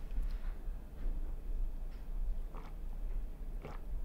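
A young woman sips a drink and swallows.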